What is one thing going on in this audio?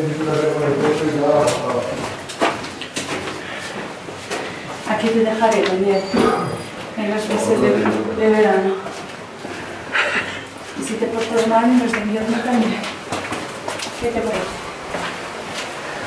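A young woman talks calmly in an echoing tunnel.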